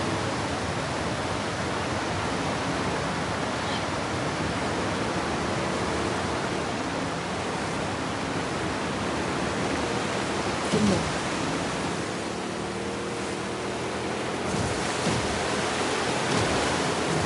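Rushing water churns and splashes steadily around a small boat.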